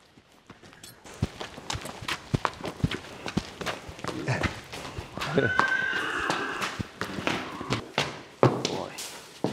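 Horse hooves clop on hard ground.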